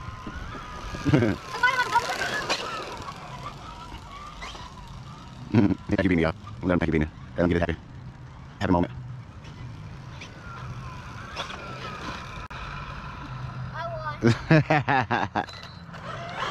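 An electric radio-controlled truck's motor whines in bursts as it speeds along pavement.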